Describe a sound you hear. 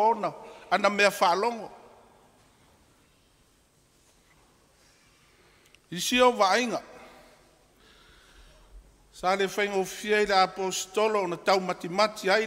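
An elderly man speaks calmly through a microphone, with long pauses.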